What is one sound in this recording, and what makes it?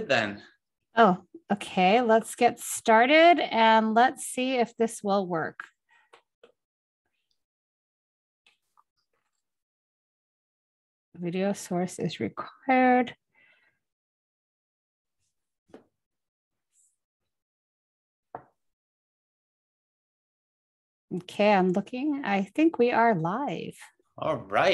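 A middle-aged woman speaks calmly over an online call, with pauses.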